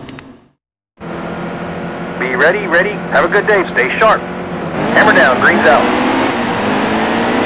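Racing car engines roar loudly and rev up together.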